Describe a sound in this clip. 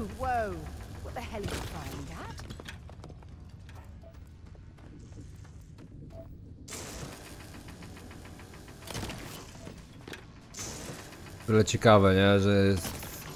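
A laser beam hums and crackles as it cuts rock.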